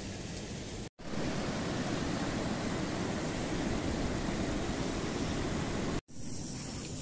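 A mountain stream rushes over rocks.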